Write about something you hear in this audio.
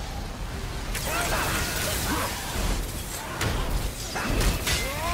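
Electric bolts crackle and snap.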